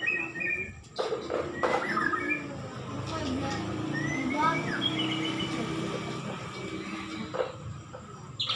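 Children talk quietly nearby.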